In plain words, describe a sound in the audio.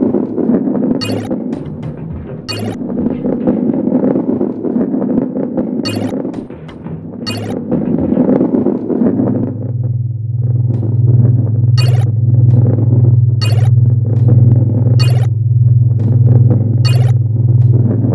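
A short bright chime rings each time a coin is collected.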